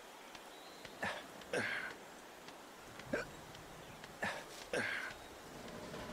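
A young man grunts with effort while climbing.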